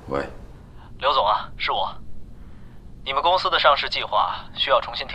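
A young man speaks calmly and quietly into a telephone.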